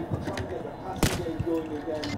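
A single gunshot cracks loudly.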